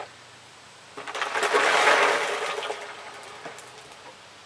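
Water splashes out of a plastic cooler onto grass.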